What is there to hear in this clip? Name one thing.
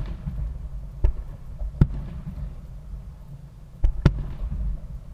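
Fireworks bang and pop in the distance outdoors.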